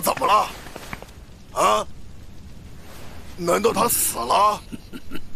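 A man speaks in a low, grave voice, close by.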